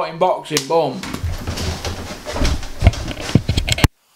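Clothing rustles and bumps against the microphone as a man moves past it.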